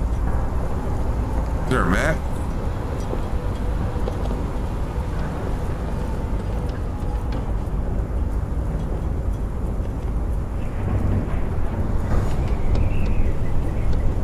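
Footsteps clank on metal grating.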